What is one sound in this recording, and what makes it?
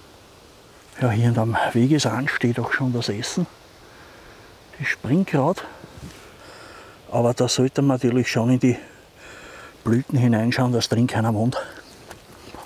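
An older man talks calmly, close by.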